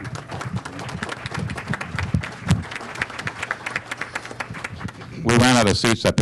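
A small group applauds with many quick claps.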